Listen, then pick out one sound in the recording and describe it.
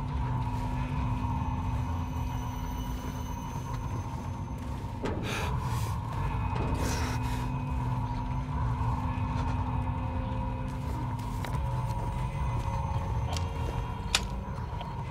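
Footsteps tread slowly across a hard floor.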